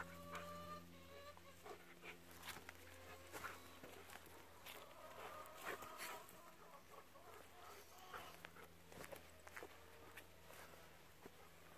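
Dogs run over dry grass and soil, with paws rustling and thudding.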